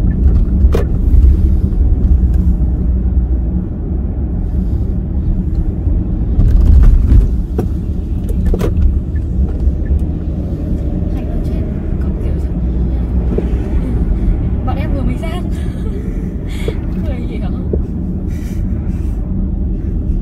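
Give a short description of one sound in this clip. A car engine hums steadily as tyres roll over the road.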